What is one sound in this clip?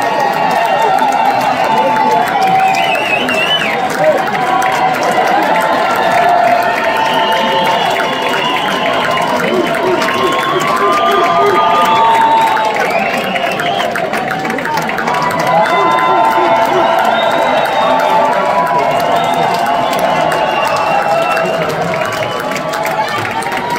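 A large crowd cheers and screams loudly in a big hall.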